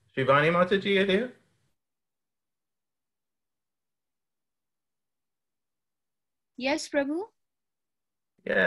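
A woman speaks in short phrases through a microphone, with long pauses between them.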